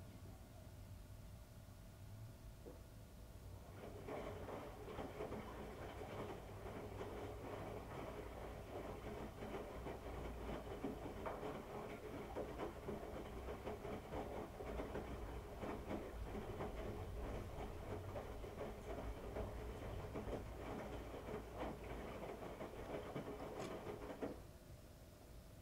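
A washing machine drum tumbles clothes with a steady rumbling hum.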